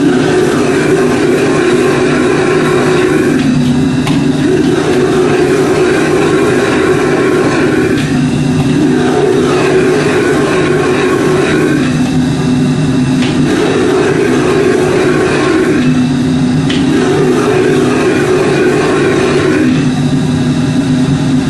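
Food sizzles as it is stir-fried in a wok.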